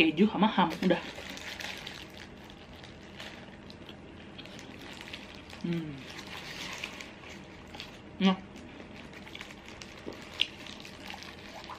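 A young woman chews food with soft smacking sounds.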